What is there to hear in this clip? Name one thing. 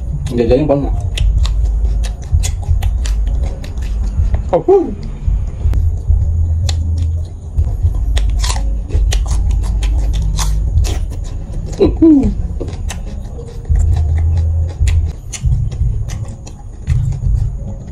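A man chews food wetly and crunchily close to a microphone.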